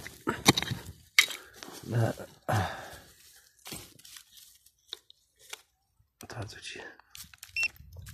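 Loose soil and dry grass rustle as a hand digs.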